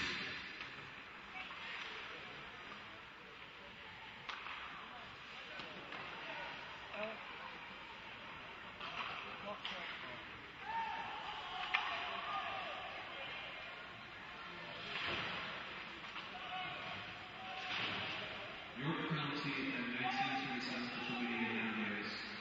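A crowd of spectators murmurs and cheers in a large echoing arena.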